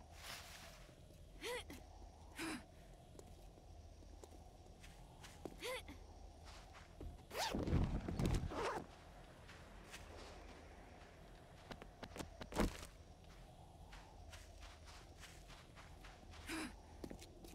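Footsteps crunch over dry ground.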